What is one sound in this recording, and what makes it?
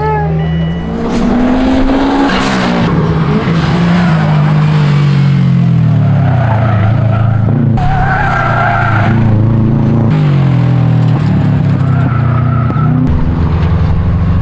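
A car engine revs hard, rising and falling.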